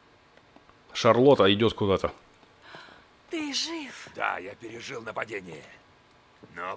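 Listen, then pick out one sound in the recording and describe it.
A woman speaks with surprise, heard close.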